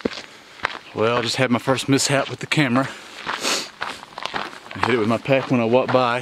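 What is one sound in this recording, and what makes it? A man speaks close by, slightly out of breath, as he walks.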